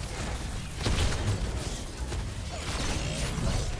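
Energy blasts crackle and hum.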